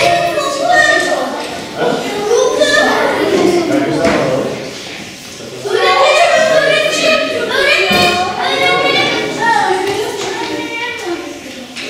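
Young people chatter and talk over one another in an echoing hall.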